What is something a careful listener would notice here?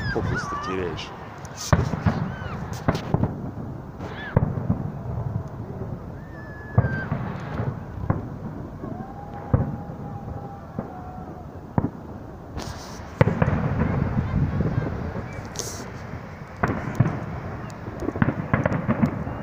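Fireworks bang and boom in the distance.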